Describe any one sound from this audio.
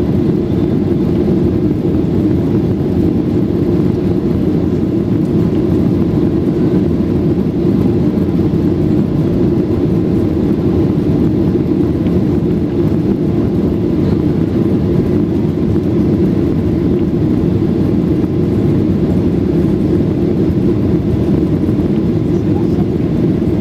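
Jet engines roar steadily inside an airplane cabin in flight.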